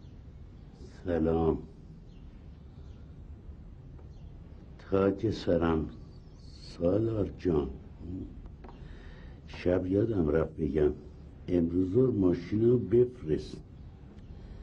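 An elderly man reads aloud in short bursts, close by.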